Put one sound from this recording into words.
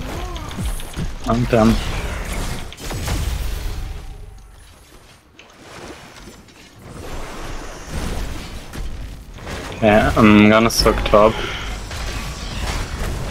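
Game battle effects clash and crackle.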